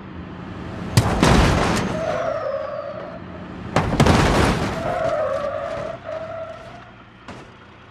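A car crashes loudly into a bus with crunching metal.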